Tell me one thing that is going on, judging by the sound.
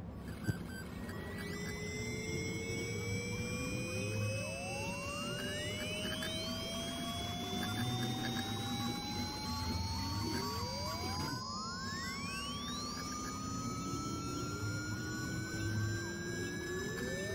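An old computer plays slowly rising electronic tones.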